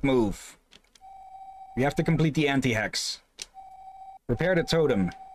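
A game's dialogue text beeps steadily as it types out.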